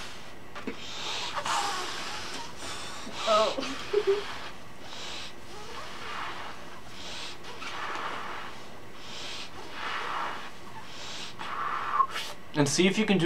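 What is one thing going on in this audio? A young woman speaks softly, almost whispering, close by.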